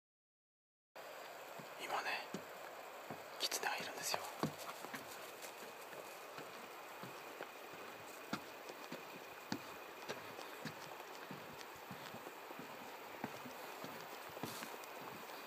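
Tall grass rustles and brushes close against a microphone.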